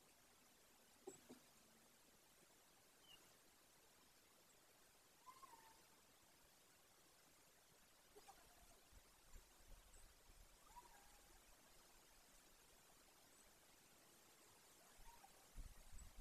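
An eagle gives short high chirping calls.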